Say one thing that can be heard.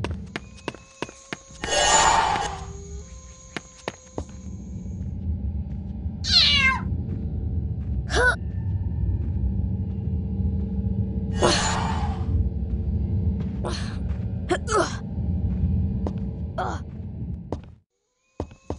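Footsteps run across a wooden floor.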